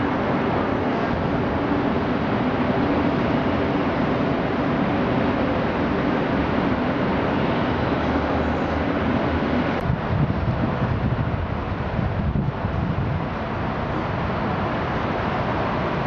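Wind blows steadily outdoors, gusting across the microphone.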